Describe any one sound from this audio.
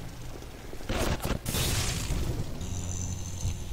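An electric bolt crackles and buzzes.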